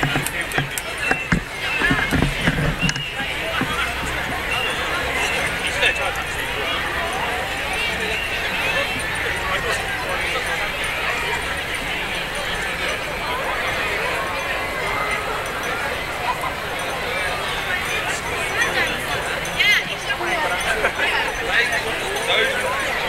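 A large crowd chatters and murmurs all around outdoors.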